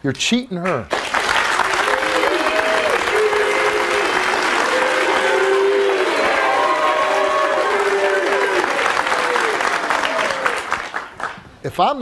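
A studio audience applauds and cheers loudly.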